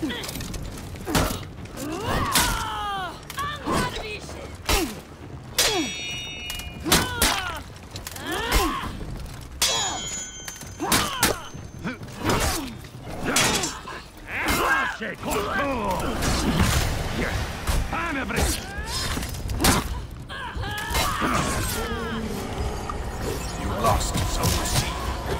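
Fighters grunt and yell as they swing and take blows.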